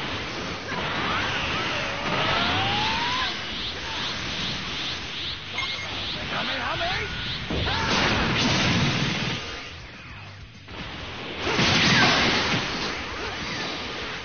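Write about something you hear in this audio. Sci-fi impacts boom and explode.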